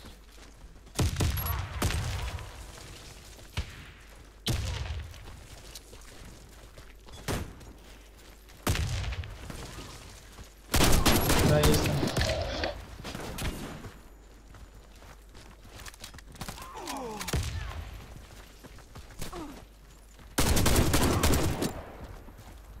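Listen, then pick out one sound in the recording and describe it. Gunshots ring out in loud, short bursts with a sharp echo.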